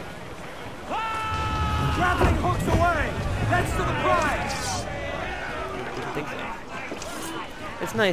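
Cannons fire with deep booms.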